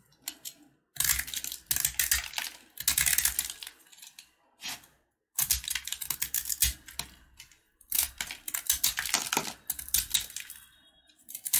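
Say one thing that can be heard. A plastic blade scrapes and crunches through a crisp puffed grain bar in bursts, close up.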